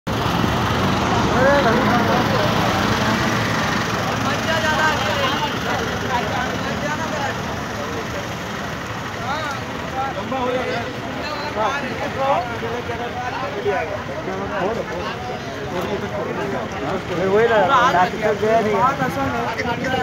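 A crowd of men talk and shout outdoors close by.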